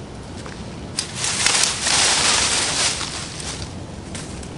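Leafy branches rustle and crackle as they are pulled from a bush.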